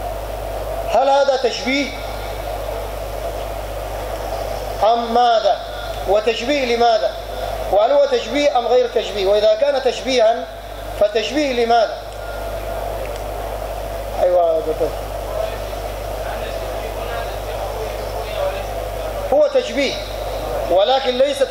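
A man speaks calmly into a microphone, heard through a loudspeaker in bursts with pauses.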